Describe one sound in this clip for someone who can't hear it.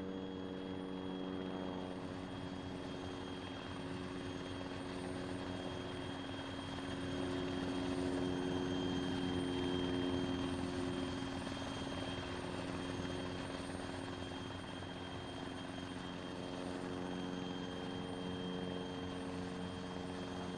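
A helicopter engine hums and whines steadily close by.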